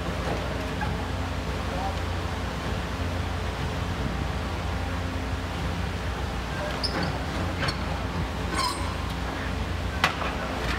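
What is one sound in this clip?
A demolition machine's engine rumbles steadily.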